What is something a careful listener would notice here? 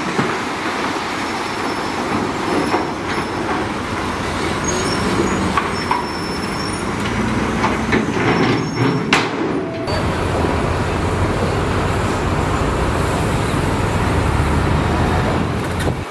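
Rocks scrape and clatter as a bulldozer blade pushes them.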